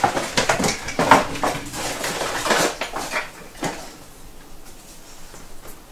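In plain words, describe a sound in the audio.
A drawer rattles open and shut.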